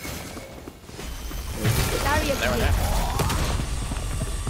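A magical orb hums and crackles as it is thrown.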